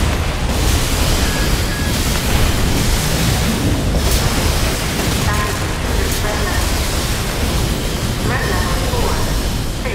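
Laser beams hum and zap.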